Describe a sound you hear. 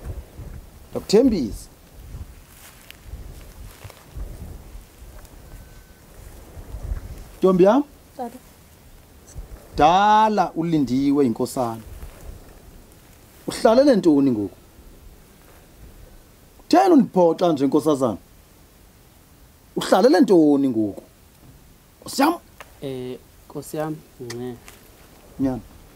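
A man speaks solemnly in short, spaced phrases close by.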